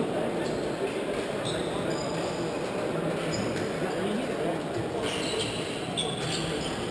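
A crowd chatters throughout a large echoing sports hall.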